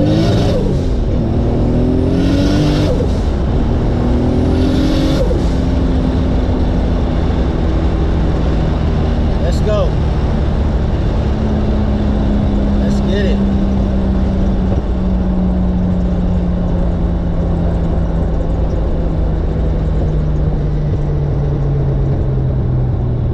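Wind rushes loudly past an open car.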